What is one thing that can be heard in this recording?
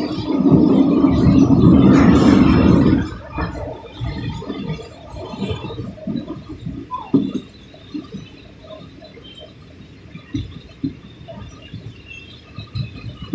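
A vehicle rumbles and rattles along while moving.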